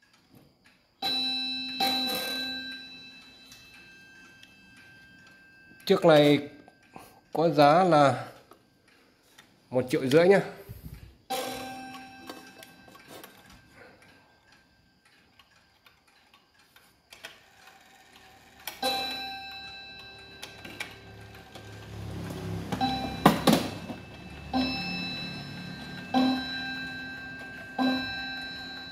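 A mechanical wall clock strikes on a ringing gong.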